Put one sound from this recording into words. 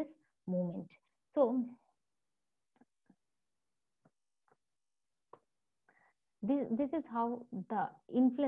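A woman speaks calmly through an online call, pausing between phrases.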